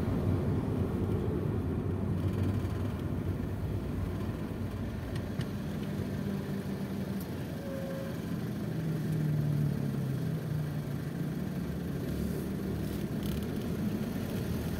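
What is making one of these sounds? A car engine hums low and steady from inside the car as it creeps along in slow traffic.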